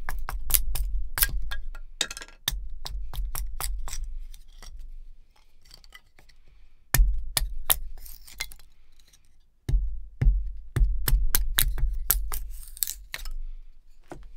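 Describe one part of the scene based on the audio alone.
A hatchet taps and splits thin sticks of wood with sharp knocks.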